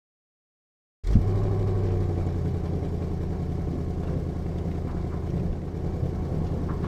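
A car engine rumbles deeply as a car rolls slowly to a stop.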